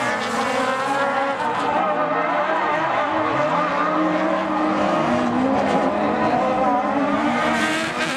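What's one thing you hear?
Racing car engines roar and rev.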